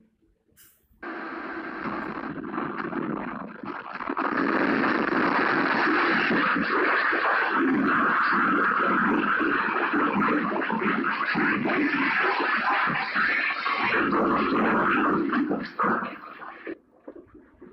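Shelves and equipment rattle and shake violently.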